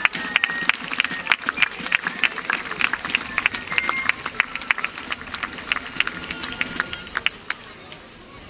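Castanets click sharply in quick rhythm.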